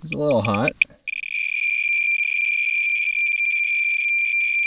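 A handheld meter gives a steady high-pitched beep.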